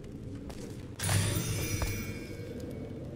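A bright magical chime rings out as an item is picked up.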